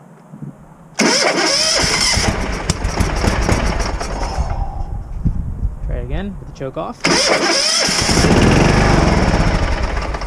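A small engine runs loudly and roughly.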